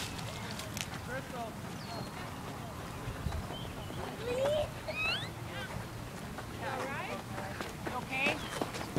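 Children call out and shout excitedly nearby.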